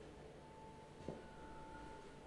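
A metal sieve gets a dull knock.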